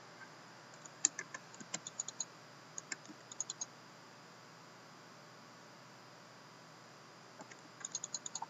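A computer mouse clicks several times.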